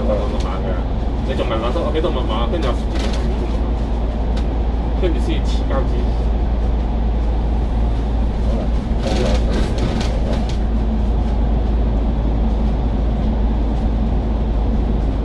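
A vehicle's engine rumbles steadily while driving through an echoing tunnel.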